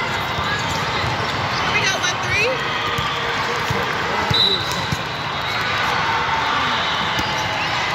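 A ball thumps off a player's hands.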